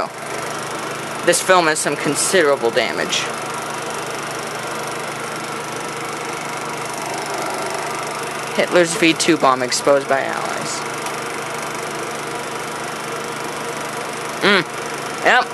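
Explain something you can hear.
A slide projector clicks as the slides change.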